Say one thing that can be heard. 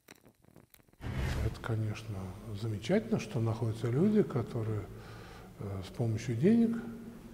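An elderly man speaks calmly and slowly in a room with a slight echo.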